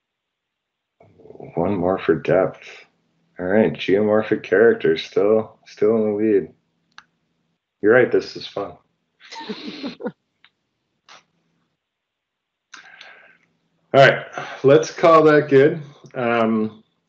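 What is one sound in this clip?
A man speaks calmly over an online call, with short pauses.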